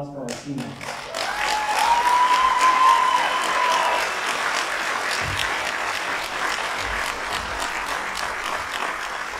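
A string orchestra plays in a large echoing hall.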